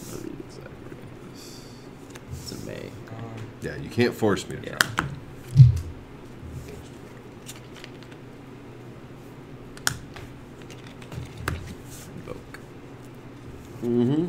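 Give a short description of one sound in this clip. Playing cards slide and tap softly on a cloth mat.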